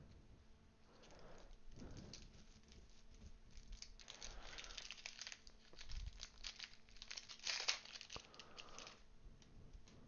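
A foil wrapper crinkles and tears as it is opened.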